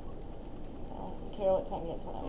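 A young woman speaks briefly into a close microphone.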